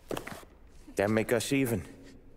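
A man asks a short question calmly.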